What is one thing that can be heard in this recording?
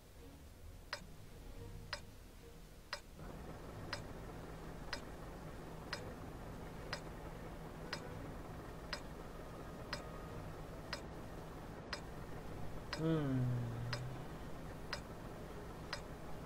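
A countdown timer ticks once every second.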